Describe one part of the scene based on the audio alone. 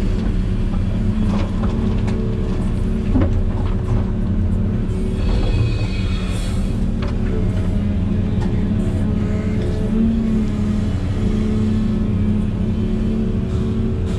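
A diesel excavator engine rumbles steadily from inside the cab.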